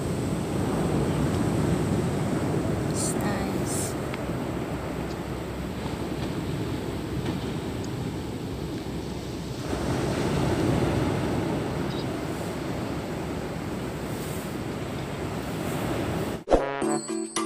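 Gentle waves wash onto a sandy shore.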